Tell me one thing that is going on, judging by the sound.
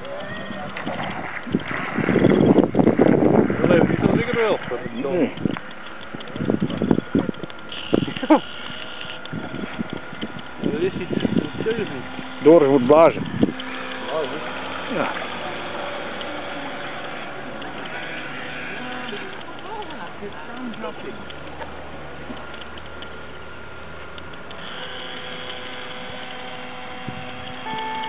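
A small electric motor of a model boat hums quietly on the water.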